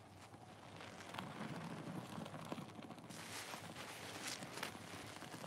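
Water trickles and splashes into foamy suds.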